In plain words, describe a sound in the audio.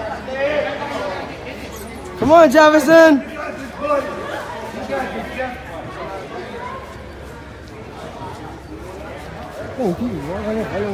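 Spectators talk and cheer in a large echoing gym.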